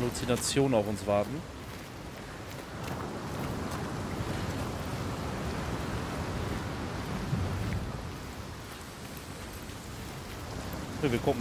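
Water rushes steadily below.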